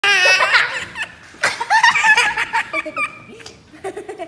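A small child squeals and laughs loudly close by.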